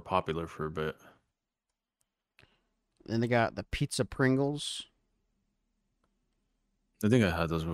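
A man talks with animation in short bursts, close to a microphone.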